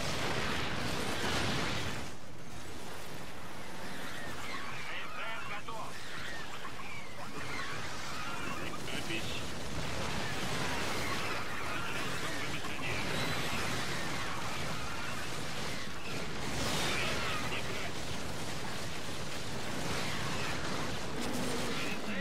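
Gunfire and explosions crackle and boom in a video game battle.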